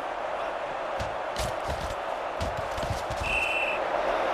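Football players collide with dull thuds.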